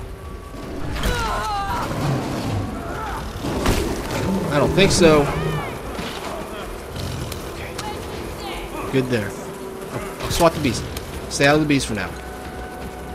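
A wild animal snarls and squeals.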